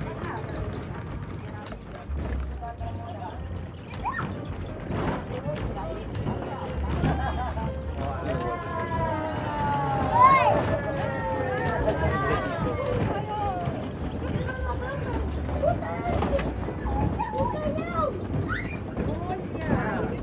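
A funicular car rumbles steadily along its track.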